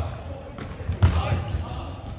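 A volleyball is struck with a sharp slap in a large echoing hall.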